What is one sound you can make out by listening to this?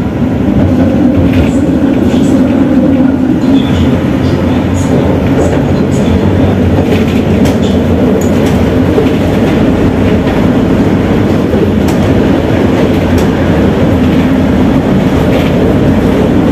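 Loose fittings rattle and click inside a moving tram.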